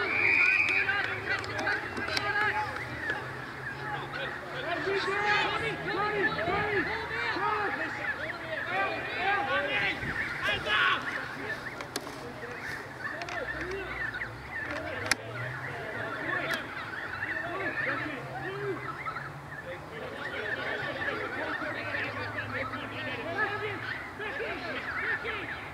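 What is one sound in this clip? Adult men shout and talk over one another nearby, outdoors.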